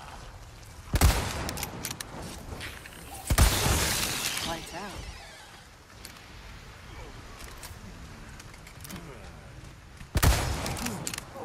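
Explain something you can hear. Gunshots ring out loudly with echoing booms.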